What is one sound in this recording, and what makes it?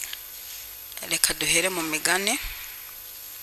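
A woman speaks into a microphone in a slow, drawn-out voice.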